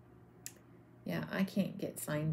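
A woman talks calmly into a close microphone.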